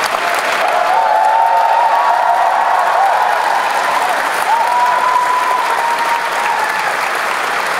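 A crowd applauds and cheers in a large echoing hall.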